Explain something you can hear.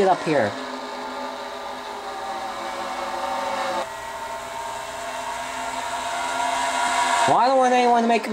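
Race car engines drone loudly at high speed.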